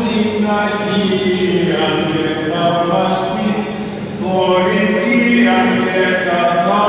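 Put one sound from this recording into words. An elderly man chants steadily through a microphone in a large echoing hall.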